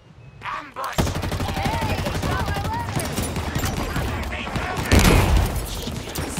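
Gunfire and explosions crackle and boom in a fierce battle.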